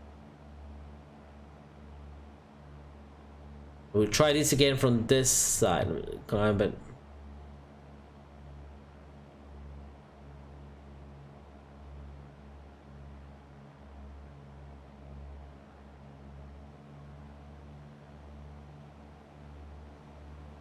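A light aircraft engine drones steadily.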